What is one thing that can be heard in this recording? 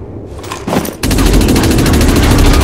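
Gunfire and explosions rumble in a battle.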